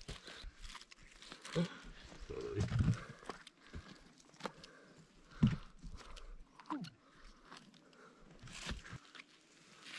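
Pruning shears snip with sharp clicks.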